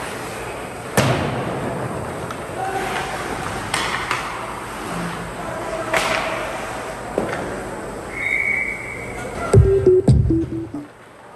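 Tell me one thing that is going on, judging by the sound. Hockey sticks clack against the puck with sharp knocks, echoing in a large rink.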